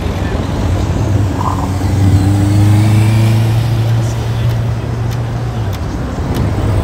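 A tram hums as it passes close by.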